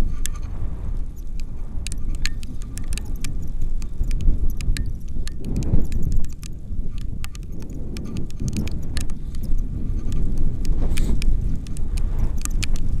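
Strong wind buffets a microphone throughout.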